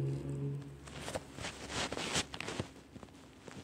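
A rotary dial on a phone clicks rapidly as it spins back.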